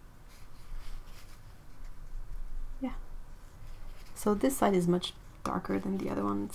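A paper tissue crinkles as it dabs at paper.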